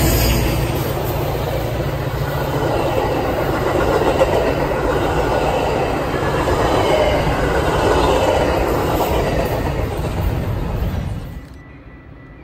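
A passenger train rumbles past close by, its wheels clattering on the rails.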